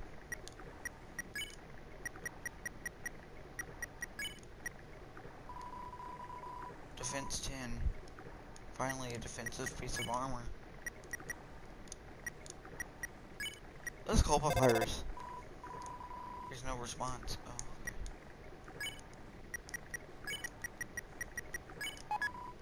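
Short electronic blips tick as a game menu cursor moves.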